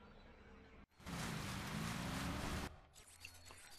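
A boat engine roars over splashing water.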